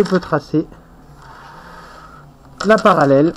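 A pencil scratches along a ruler across paper.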